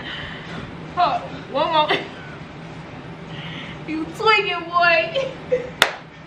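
A young woman squeals with laughter.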